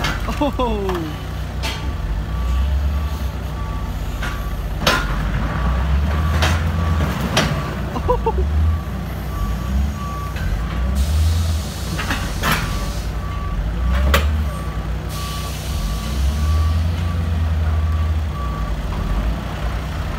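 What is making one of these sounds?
A loader's diesel engine rumbles and revs.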